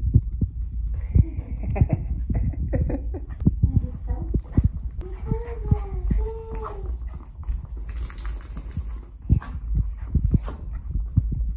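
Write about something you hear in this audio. A small dog's paws patter on the floor.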